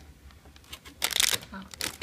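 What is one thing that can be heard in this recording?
Plastic packing film crinkles as a hand handles it.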